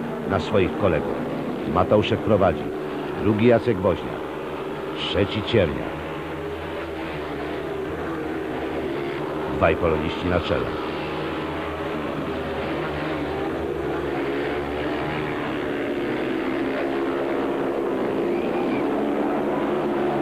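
Motorcycle engines roar and whine, rising and falling in pitch.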